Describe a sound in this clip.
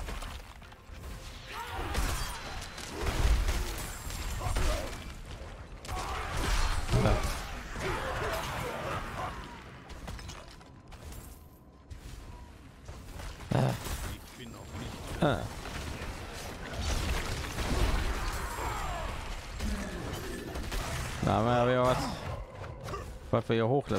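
Game combat effects crash, whoosh and thud.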